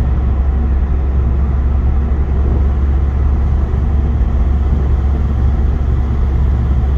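A car's engine hums steadily from inside the car.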